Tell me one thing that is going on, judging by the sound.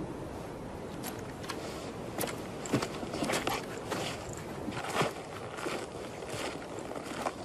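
Footsteps crunch through snow outdoors.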